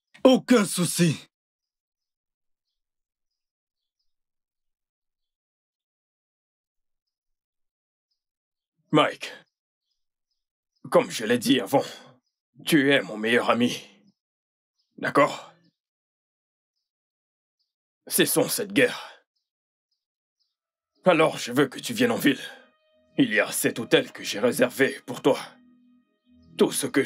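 A man speaks with animation, close by.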